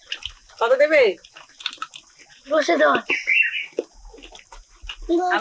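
A boy chews and munches on food.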